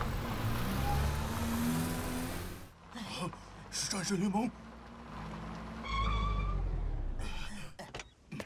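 A car engine roars as a car speeds along.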